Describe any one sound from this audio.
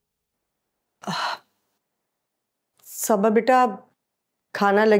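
An older woman speaks in short, tense phrases.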